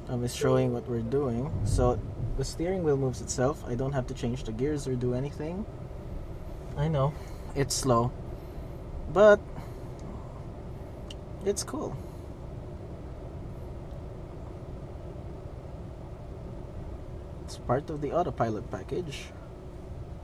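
A man speaks calmly close by inside a car.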